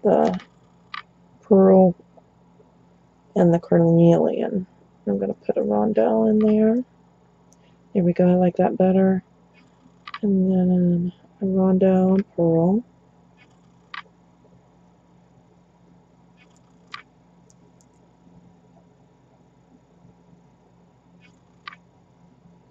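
Small beads click softly against each other.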